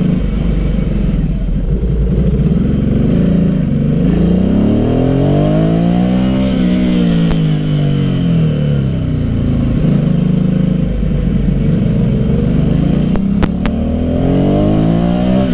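A motorcycle engine hums close by, rising and falling in pitch as it speeds up and slows.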